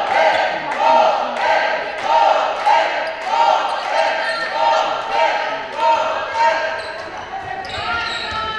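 Young spectators chant rhythmically in a large echoing hall.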